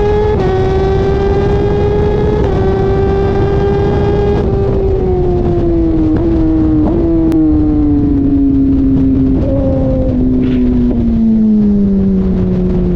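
Wind rushes hard past the rider.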